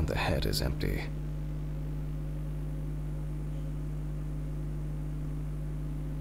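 An electric lamp hums steadily.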